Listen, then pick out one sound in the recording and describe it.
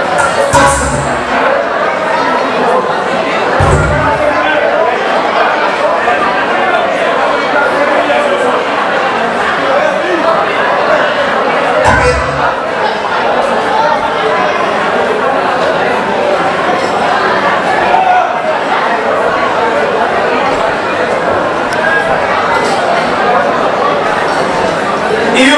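A large indoor crowd chatters and murmurs throughout.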